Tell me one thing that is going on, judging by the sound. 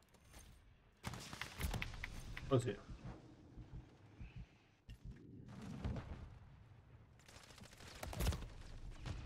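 A young man talks animatedly into a close microphone.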